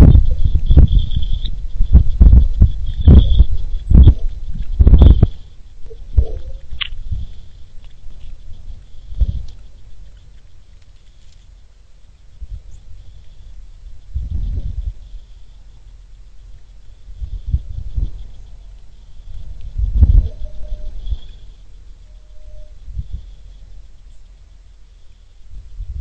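Wind gusts rumble outdoors.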